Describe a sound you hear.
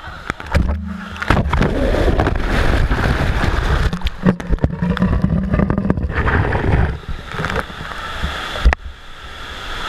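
Water splashes and sloshes right against the microphone.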